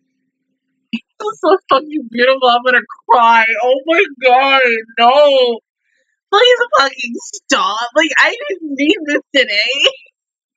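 A young woman talks excitedly close to a headset microphone.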